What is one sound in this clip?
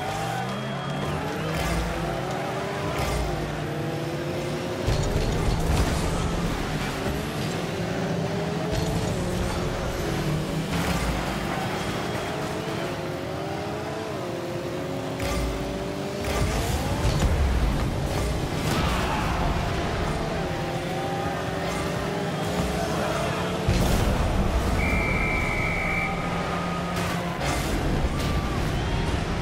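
A car engine hums and revs up and down throughout.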